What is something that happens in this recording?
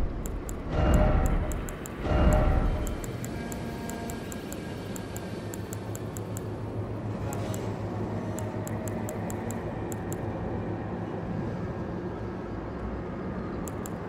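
Short soft clicks tick in quick runs as a menu cursor moves.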